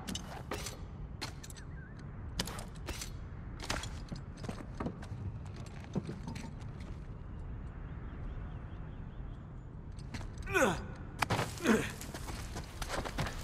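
Footsteps thud on creaking wooden boards.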